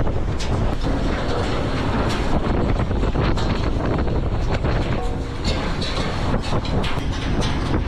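Wind roars loudly across the open sea.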